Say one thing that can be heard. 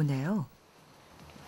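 An elderly woman speaks briefly in a high voice, close by.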